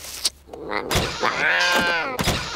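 A cat yowls loudly.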